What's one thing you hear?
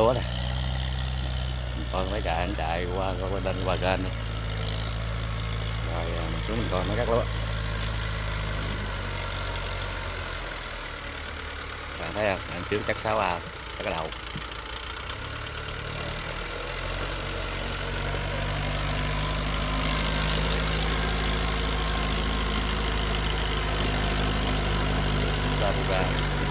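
A tractor engine rumbles steadily nearby, growing louder as it comes closer.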